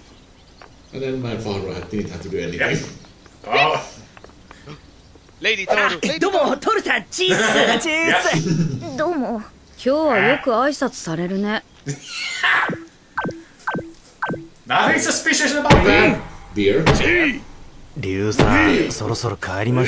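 Several men talk and react with animation through headset microphones.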